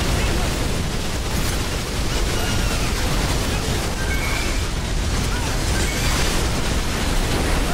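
Explosions boom and rumble loudly.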